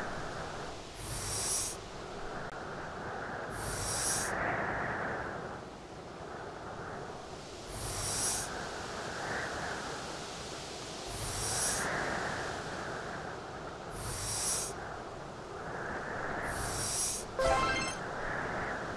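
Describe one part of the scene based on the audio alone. A heavy boulder scrapes across ice in short bursts.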